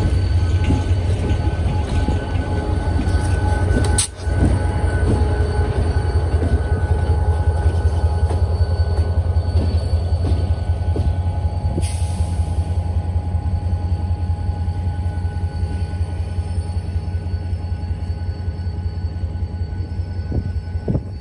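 Railway cars rumble and clack along the tracks nearby.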